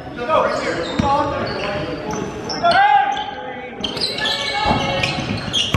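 A basketball thumps on the floor.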